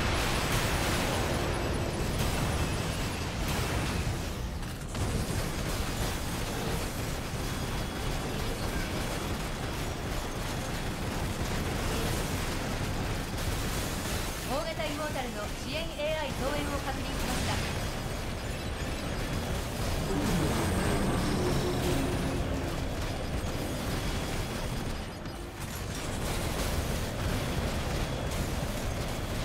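Rapid gunfire rattles and booms throughout.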